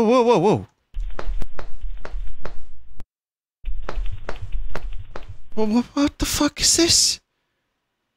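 Quick thumping blows land in a cartoonish scuffle.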